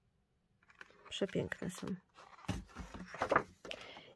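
Stiff paper sheets rustle and flap as they are handled and flipped.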